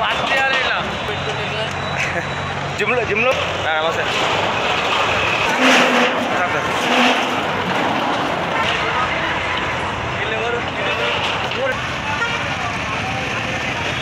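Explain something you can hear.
An excavator engine rumbles and whines.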